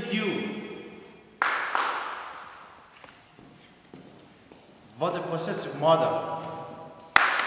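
A man speaks briefly nearby in an echoing room.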